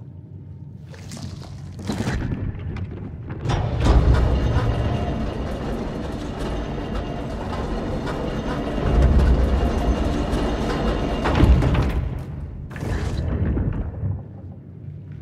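A heavy machine rumbles and roars as it rides along.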